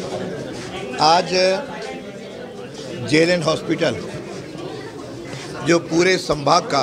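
A crowd of men chants in reply.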